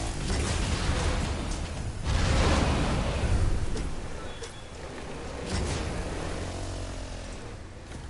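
A small engine roars and rumbles.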